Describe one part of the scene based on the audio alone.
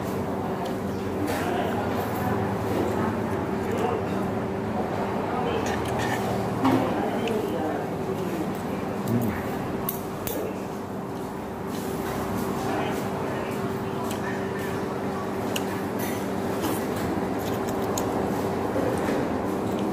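A man chews and slurps food.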